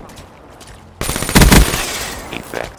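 Rapid gunfire bursts out loudly.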